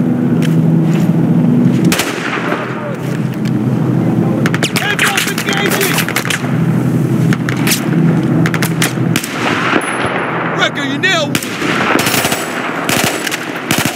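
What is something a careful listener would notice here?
Rifle shots crack in quick bursts.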